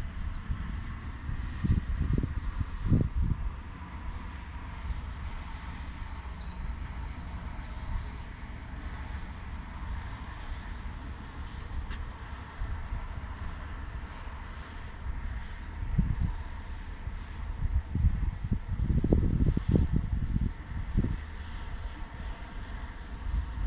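Wind gusts rumble across the microphone outdoors.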